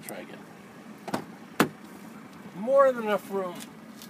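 A car door unlatches and swings open.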